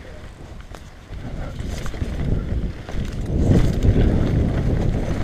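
Wind rushes loudly past a fast-moving rider.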